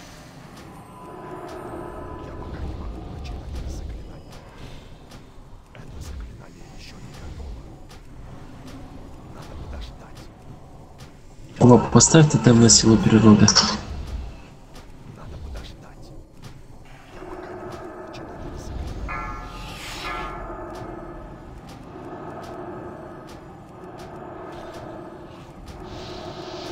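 Spell effects and weapon hits clash in a battle.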